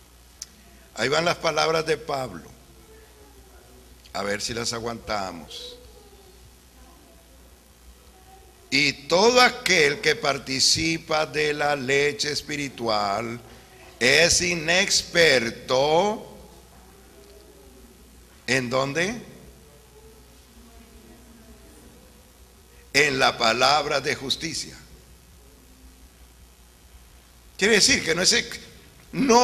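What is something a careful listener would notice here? A middle-aged man speaks calmly into a microphone in bursts, with pauses, heard over a loudspeaker.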